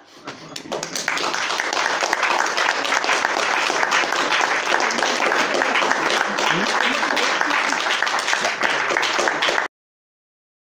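A small audience applauds loudly.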